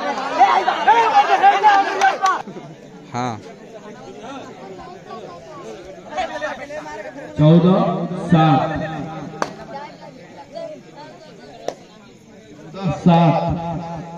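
Young men shout loudly outdoors, cheering and calling out.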